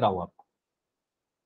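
A young man speaks briefly through an online call.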